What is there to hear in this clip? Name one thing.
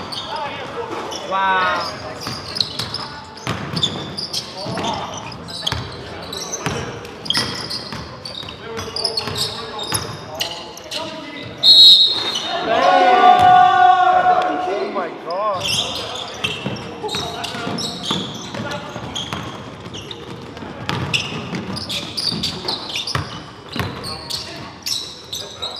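Young men shout and call out to each other.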